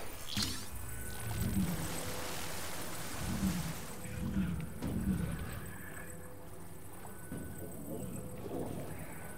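An electric magnetic hum drones steadily.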